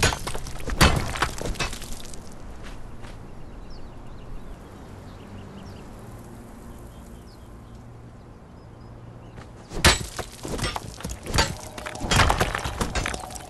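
A pickaxe strikes stone with sharp cracks.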